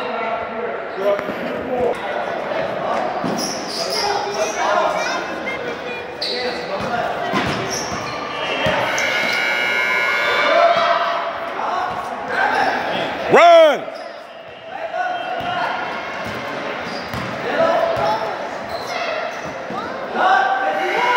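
Players and spectators call out in a large echoing gym.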